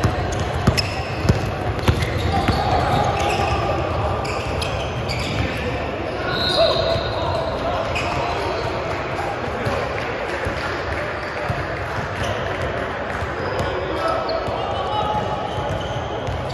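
Sneakers squeak on a hardwood court.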